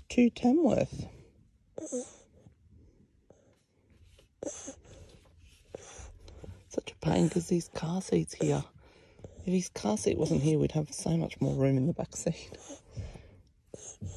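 A baby suckles and swallows softly, close by.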